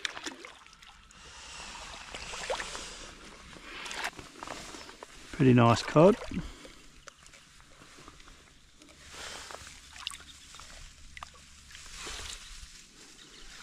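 Water splashes as a fish thrashes at the surface.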